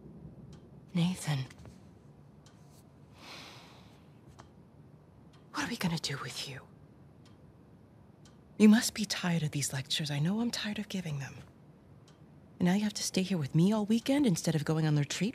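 A woman speaks calmly and sternly, close by.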